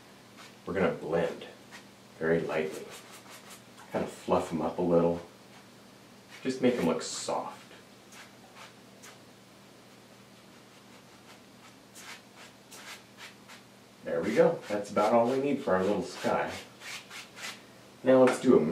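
A man talks calmly nearby, in short bursts with pauses.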